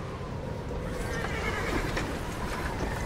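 Horses pull creaking wagons through snow.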